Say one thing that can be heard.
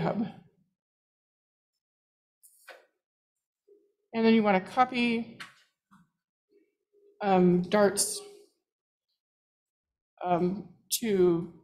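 A woman speaks calmly through a microphone, in short phrases with pauses.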